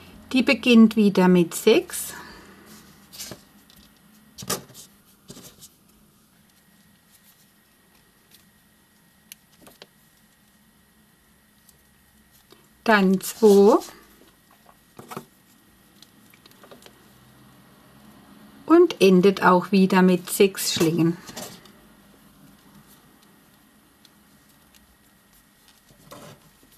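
Rubber bands creak and snap softly against a crochet hook.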